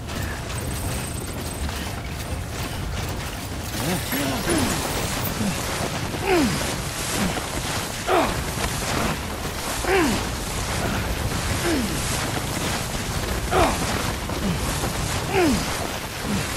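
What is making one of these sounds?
Wind blows steadily across open snow.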